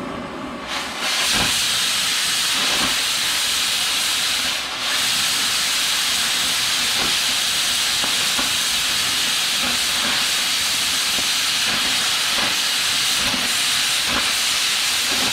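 A cutting torch hisses and roars steadily as it cuts through metal.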